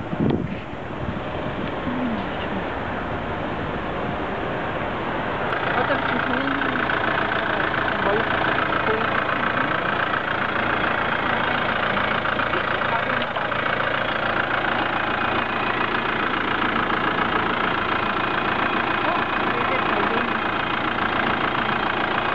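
A small machine hums and whirs steadily nearby.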